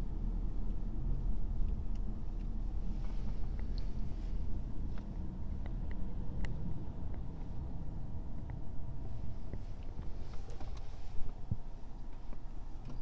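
Tyres rumble on a wet road.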